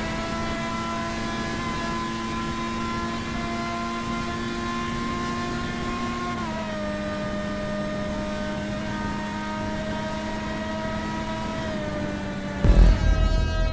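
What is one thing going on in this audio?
A racing car engine whines at a high steady pitch, then shifts lower.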